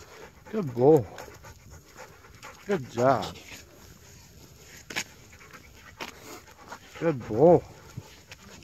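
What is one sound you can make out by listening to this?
A dog howls loudly nearby in short bursts.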